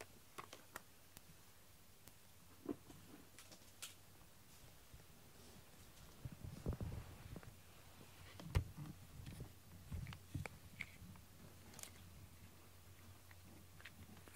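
A cat's paws pad across a foam mat.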